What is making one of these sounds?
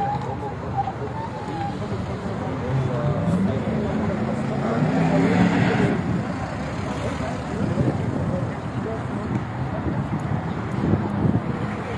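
Men talk nearby outdoors with animation.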